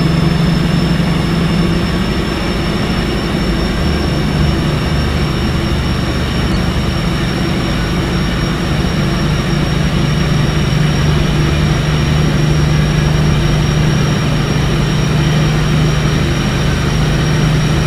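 A train's electric motors hum steadily as it gathers speed.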